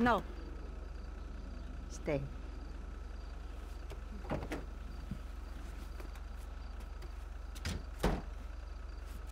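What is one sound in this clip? A car engine idles with a low steady hum.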